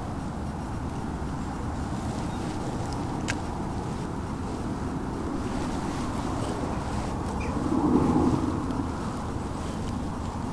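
A fishing reel clicks as a hand winds it.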